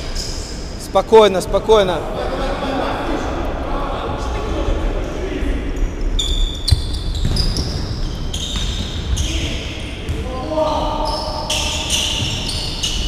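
Players shout to each other across an echoing hall.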